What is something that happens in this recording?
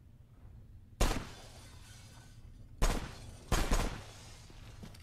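Gunshots crack loudly and echo.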